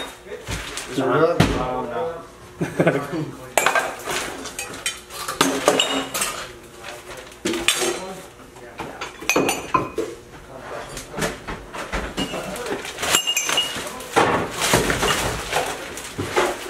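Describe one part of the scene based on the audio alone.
Objects rustle and clatter as a man sorts through clutter.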